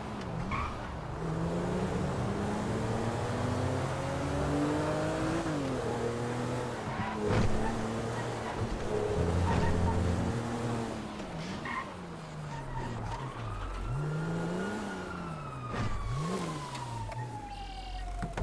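Tyres rumble and hiss on the road.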